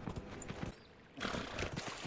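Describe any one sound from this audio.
Water splashes under a horse's hooves.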